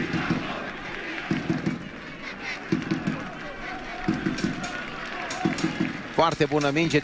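A crowd cheers and chants in a stadium.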